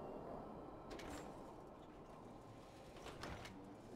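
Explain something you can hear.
A heavy metal door swings shut with a clank.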